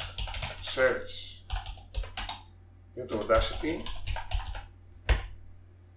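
Keys click as someone types on a keyboard.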